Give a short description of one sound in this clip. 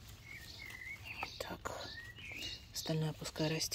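A chard stalk snaps as it is picked.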